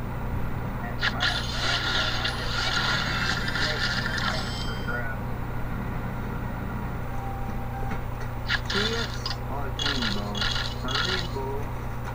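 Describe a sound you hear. Bright, sparkly chimes ring out as sweets burst in a puzzle game.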